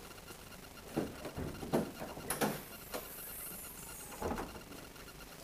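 A car hood latch clicks and the hood clunks open.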